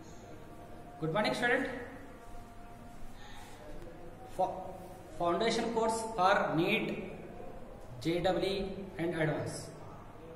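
A middle-aged man lectures calmly and clearly into a close microphone, with a slight room echo.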